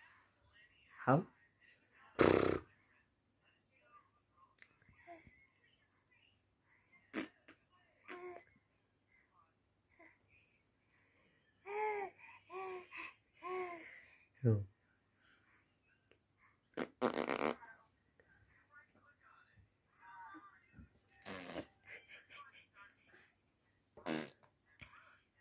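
A baby babbles and coos close by.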